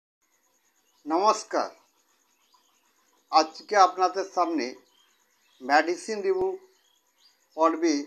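A middle-aged man speaks calmly and close to the microphone, in short phrases with pauses.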